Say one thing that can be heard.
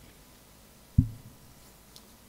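An acoustic guitar bumps with a single dull thump close by.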